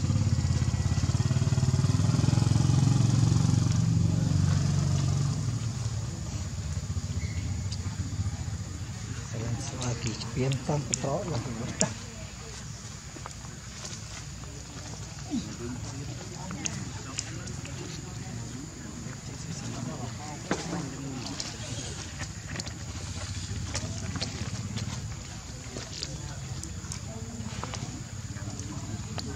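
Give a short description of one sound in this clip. A baby monkey suckles with soft wet smacking sounds.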